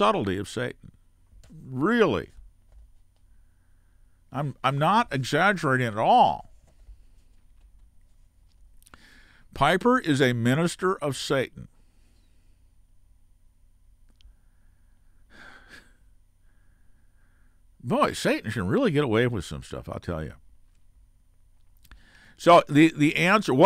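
An elderly man speaks calmly and closely into a microphone, with pauses.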